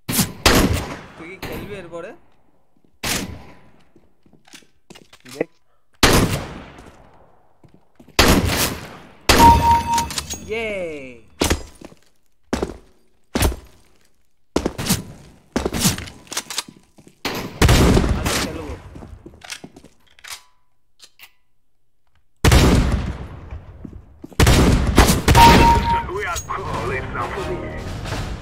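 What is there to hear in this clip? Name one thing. A young man speaks into a microphone with animation, close by.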